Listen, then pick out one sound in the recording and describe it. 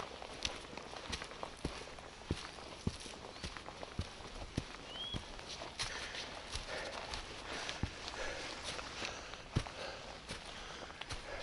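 Footsteps crunch on dry leaves along a forest trail.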